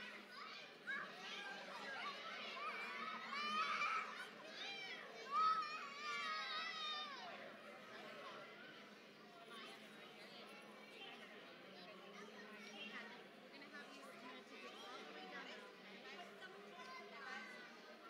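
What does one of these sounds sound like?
A group of young children talk and call out at once.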